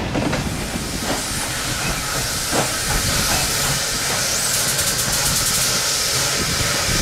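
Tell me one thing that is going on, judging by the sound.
A small steam switcher locomotive chuffs as it approaches.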